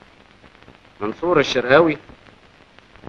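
A middle-aged man speaks briefly and with animation.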